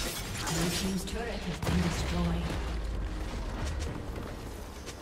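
Fantasy battle sound effects clash and whoosh.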